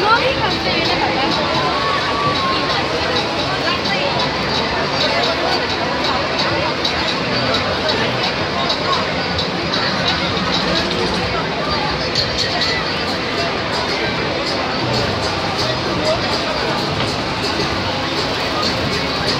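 A crowd of riders chatters and screams on a spinning swing ride.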